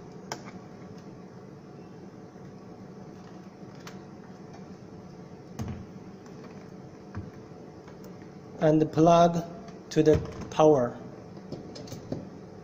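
A plastic appliance knocks and clicks as it is handled and set down.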